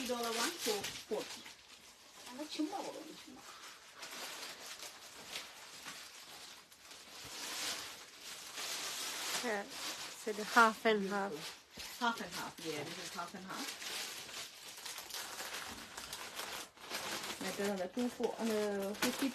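A woman talks with animation close to the microphone.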